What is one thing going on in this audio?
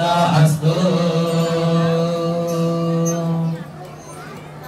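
A man chants loudly in a long, steady, drawn-out voice.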